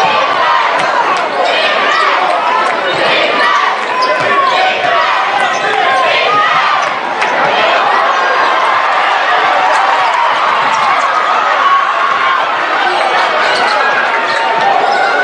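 A large crowd cheers and shouts throughout in an echoing hall.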